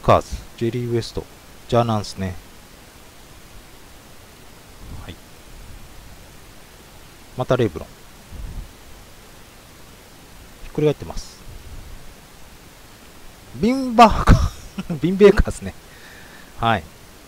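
Trading cards rustle and slide in a hand.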